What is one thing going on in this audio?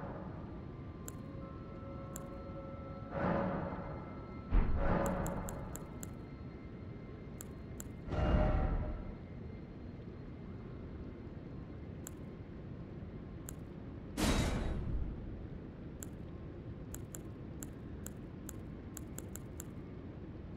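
Soft menu clicks tick as a selection moves.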